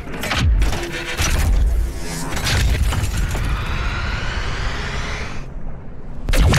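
A heavy metal mechanism turns with a grinding clank.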